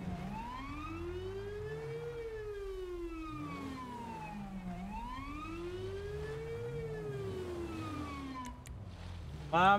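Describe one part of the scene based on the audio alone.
A siren wails, rising and falling in pitch.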